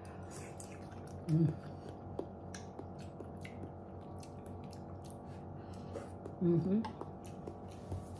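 A woman slurps soup noisily.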